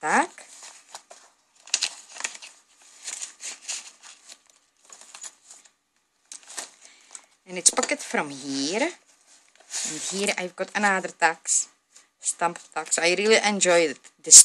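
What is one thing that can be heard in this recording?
Paper rustles and crinkles as pages are turned and handled.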